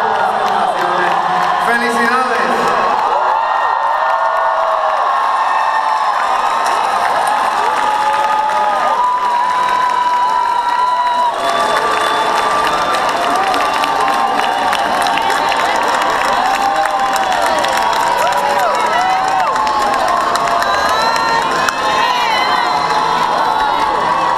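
A large crowd of young men and women cheers, shouts and chatters loudly in a big echoing hall.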